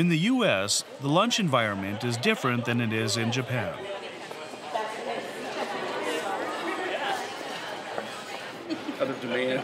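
People chatter in a busy, echoing room.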